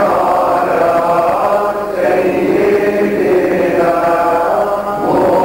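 A group of elderly men chant together in unison, close by.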